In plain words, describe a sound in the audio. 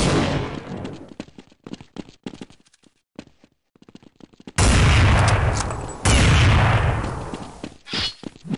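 A rifle fires a loud shot that rings out and slowly fades.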